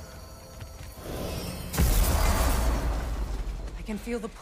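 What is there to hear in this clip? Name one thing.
A deep magical whoosh roars and fades.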